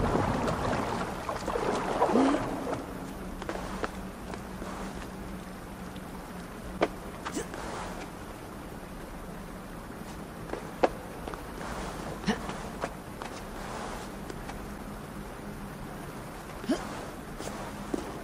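Water swishes and bubbles in a muffled, underwater way as a swimmer moves through it.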